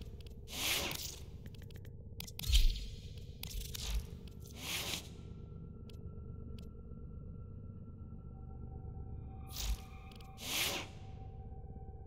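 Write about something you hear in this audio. Soft whooshing interface sounds sweep by as menus change.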